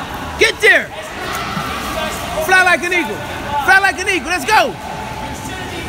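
Children shout and squeal excitedly in an echoing hall.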